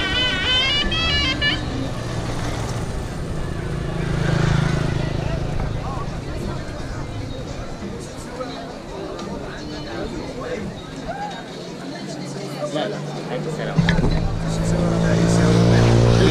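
A crowd murmurs outdoors in a busy open square.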